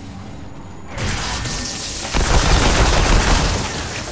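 A gun fires a crackling energy beam.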